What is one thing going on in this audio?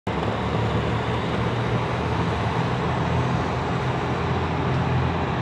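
Cars drive past on a road, tyres and engines humming.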